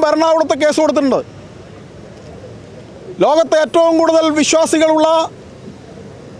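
A middle-aged man speaks firmly into microphones close by, outdoors.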